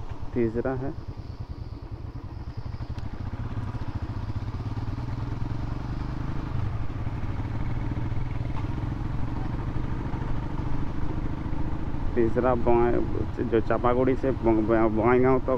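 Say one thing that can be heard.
A motorcycle engine rumbles steadily as the bike rides along.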